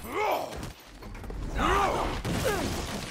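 A body crashes down onto the floor.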